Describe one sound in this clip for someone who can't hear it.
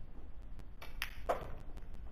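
A cue strikes a pool ball with a sharp tap.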